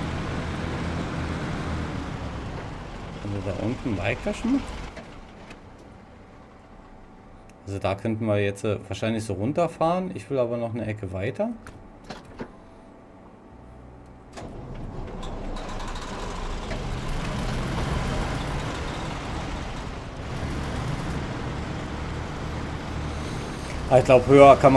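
A heavy truck engine rumbles and strains.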